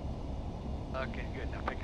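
A man speaks briefly through a headset intercom.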